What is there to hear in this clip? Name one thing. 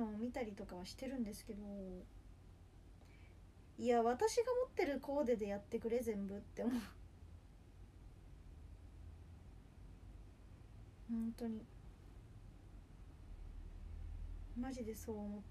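A young woman speaks softly and close up, in short bursts with pauses.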